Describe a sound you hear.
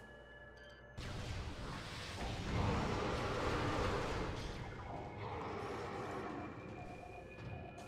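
A deep electronic rumble swells and roars.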